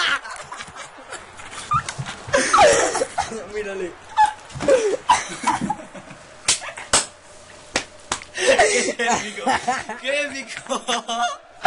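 A teenage boy laughs loudly close by.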